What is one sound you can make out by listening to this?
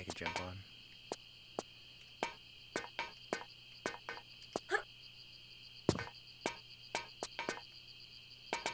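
Footsteps tap on a metal floor at a steady walking pace.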